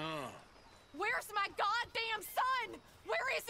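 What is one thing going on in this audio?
A woman shouts angrily.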